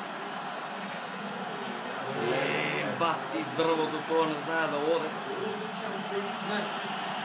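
A stadium crowd murmurs and roars steadily through a television speaker.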